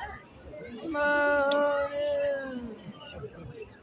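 A young child calls out in a long, drawn-out, high voice.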